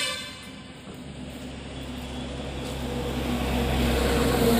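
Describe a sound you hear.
A motorbike engine rumbles as it passes by.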